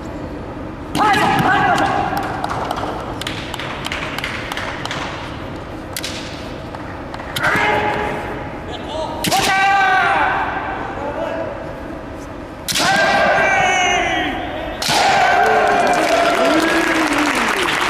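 Fencers shout loud, drawn-out battle cries that echo through a large hall.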